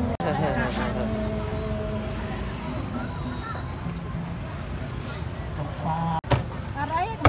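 A crowd murmurs in a busy outdoor market.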